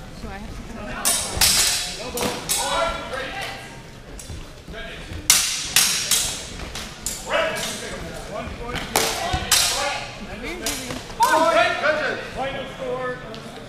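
Practice swords clack and knock together sharply in an echoing hall.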